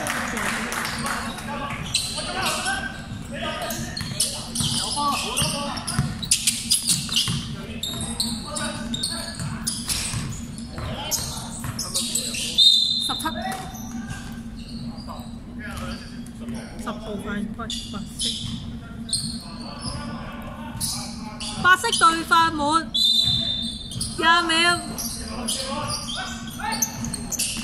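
A basketball bounces on the floor with echoing thuds.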